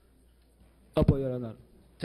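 A man answers briefly into a microphone.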